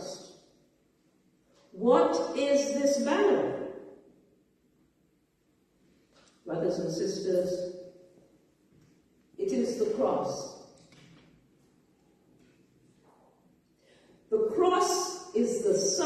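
A woman speaks in phrases through a microphone in an echoing room.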